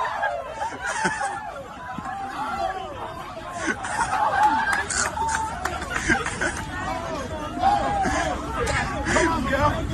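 A crowd of young men shout and chant loudly outdoors.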